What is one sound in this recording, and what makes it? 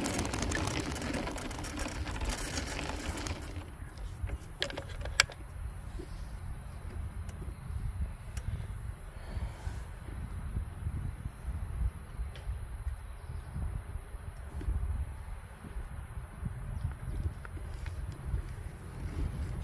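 Wind rumbles steadily across the microphone outdoors.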